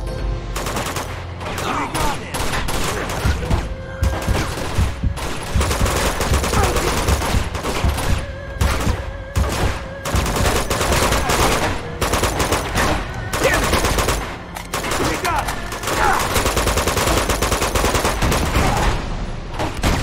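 Rapid rifle gunfire rattles in bursts.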